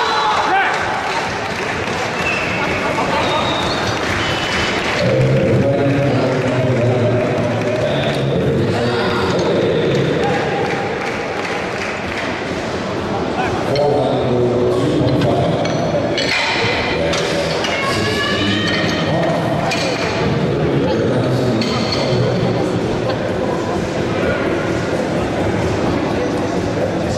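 A crowd of men and women shouts and cheers in a large echoing hall.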